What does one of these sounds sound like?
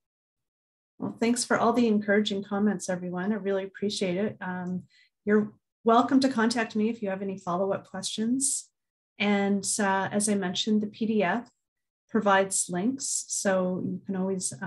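A woman speaks calmly and warmly over an online call.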